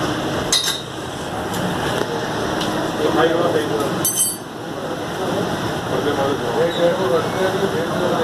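An elderly man talks close by.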